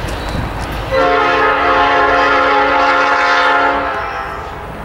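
A diesel freight locomotive sounds its air horn.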